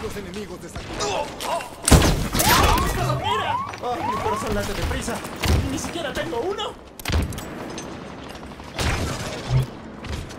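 Energy weapons fire in short, sharp bursts.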